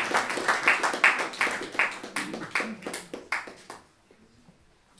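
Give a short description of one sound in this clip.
Electric guitars strum loudly in a rhythm.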